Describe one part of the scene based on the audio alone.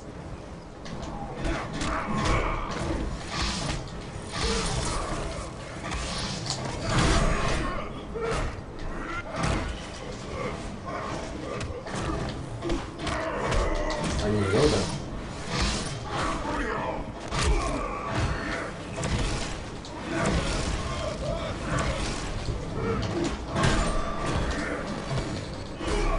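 Punches and kicks land with heavy thuds in a fighting game.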